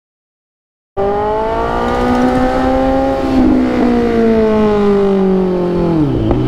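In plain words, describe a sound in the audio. A motorcycle engine rumbles and revs as it rides along.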